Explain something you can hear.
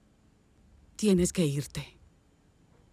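A woman speaks briefly and quietly, close by.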